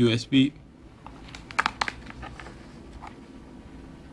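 Plastic cables rustle and click as hands handle them.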